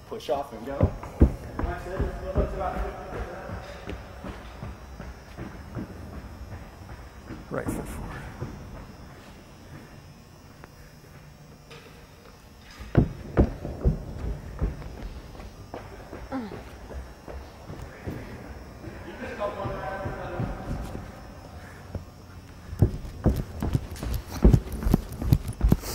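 Running footsteps thud on a padded floor.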